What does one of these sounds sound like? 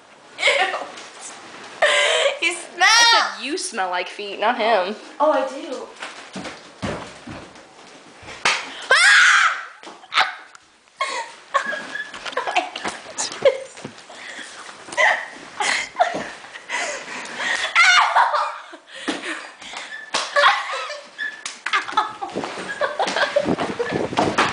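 Young women laugh close by.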